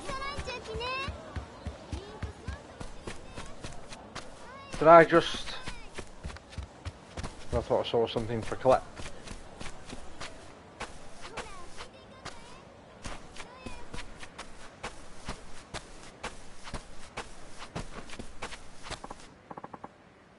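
Quick footsteps run and patter over hard ground.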